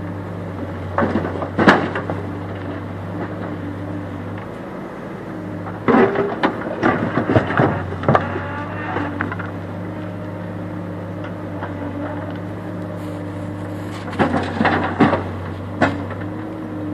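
Rocks clatter and thud as a digger bucket scoops and dumps them.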